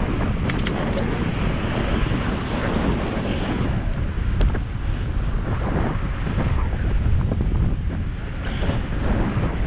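Wind rumbles loudly across a moving microphone outdoors.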